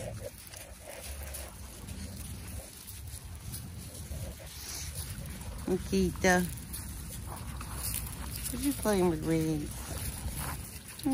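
Dogs' paws shuffle on gravel.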